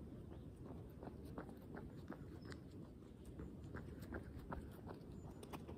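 Footsteps thud on grass as a runner passes close by.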